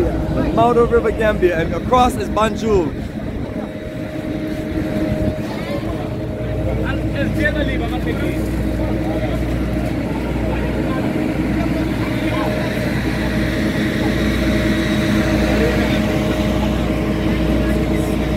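Men and women talk nearby in a crowd.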